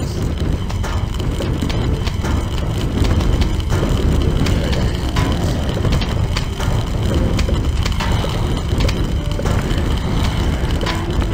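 Cartoon plants rapidly pop out peas with soft thuds.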